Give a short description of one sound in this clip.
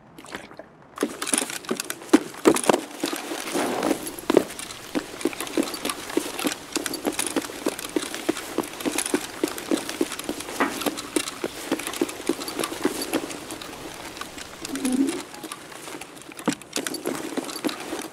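Footsteps thud on hard ground at a steady walking pace.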